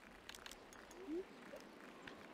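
A golf club taps a ball with a light click.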